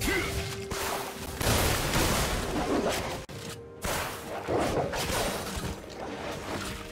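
Weapons clash and strike in quick bursts.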